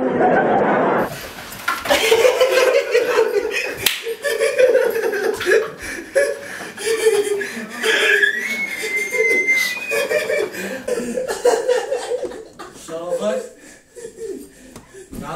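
Young men shout and laugh excitedly close by.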